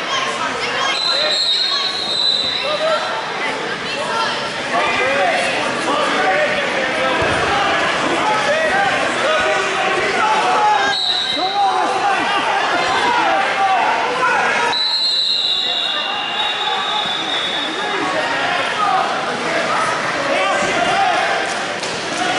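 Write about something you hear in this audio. A crowd of people talks and shouts throughout, in a large echoing hall.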